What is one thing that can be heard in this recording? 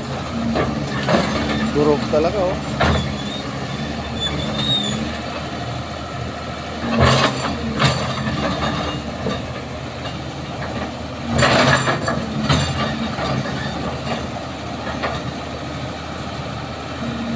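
An excavator's diesel engine rumbles steadily nearby.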